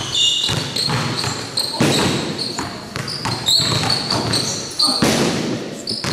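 A basketball bounces on a hard floor in an echoing gym.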